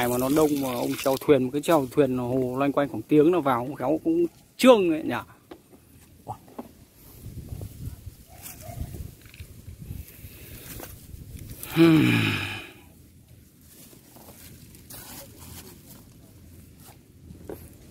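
Hands rustle and squish through damp sawdust.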